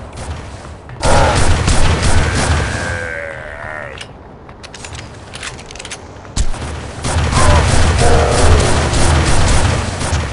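A rapid gun fires bursts of shots.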